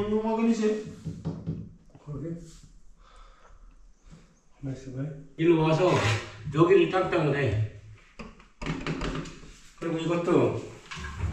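A middle-aged man talks nearby in a casual, explaining way.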